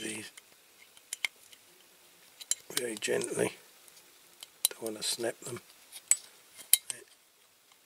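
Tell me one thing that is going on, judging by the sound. A metal tool scrapes and taps against a small metal toy.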